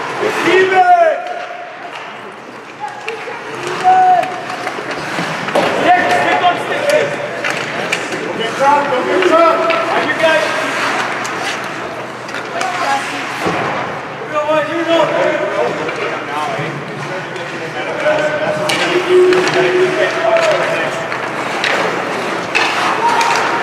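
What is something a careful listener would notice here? Spectators close by shout and cheer in a large echoing rink.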